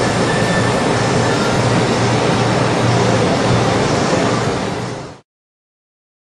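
A sanding drum grinds against plastic.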